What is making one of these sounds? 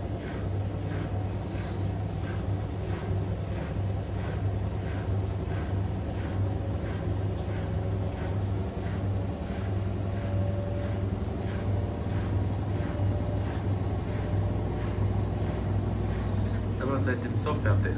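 Water sloshes rhythmically inside a washing machine drum.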